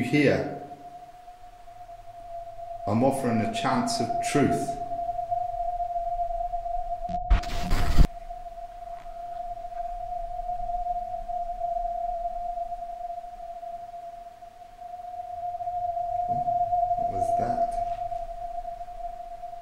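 An electronic meter gives off a steady high beep.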